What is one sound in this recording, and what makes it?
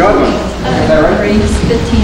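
An elderly man speaks into a microphone over a loudspeaker.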